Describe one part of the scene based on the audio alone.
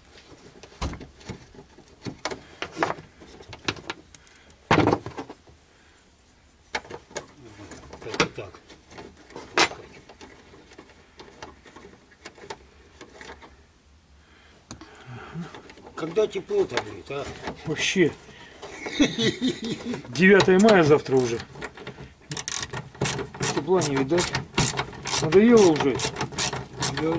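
Metal tools clink and tap against a metal car part.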